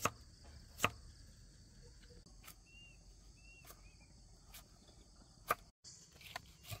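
A knife chops through vegetables on a wooden board with sharp knocks.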